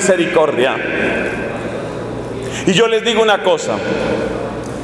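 A man speaks with animation into a microphone, heard through loudspeakers in an echoing hall.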